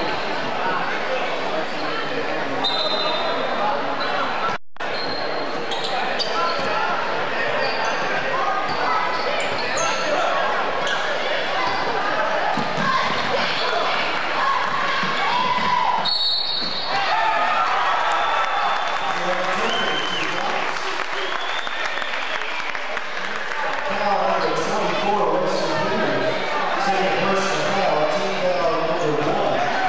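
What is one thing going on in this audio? A crowd cheers and chatters loudly in a large echoing gym.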